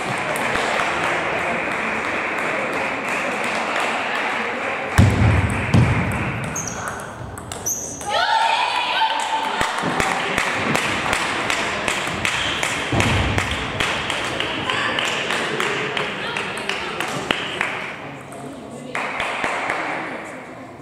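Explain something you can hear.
A hum of many voices echoes through a large hall.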